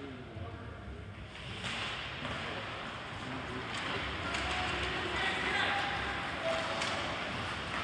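Skates scrape and hiss across ice in a large echoing rink.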